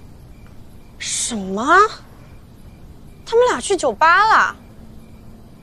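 A young woman speaks up in surprise, close by.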